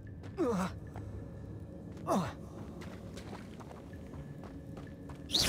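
Footsteps run lightly over dirt and stone.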